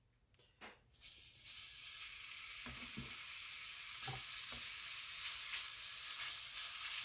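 Food sizzles in hot oil in a pot.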